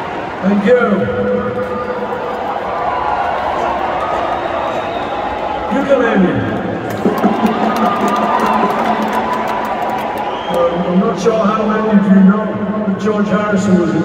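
Loud live music plays through loudspeakers in a large echoing hall.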